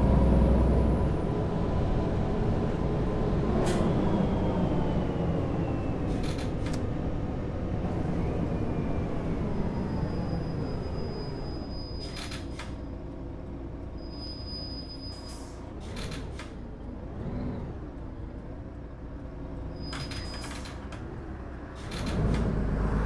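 A bus engine hums and drones steadily, rising and falling as it drives.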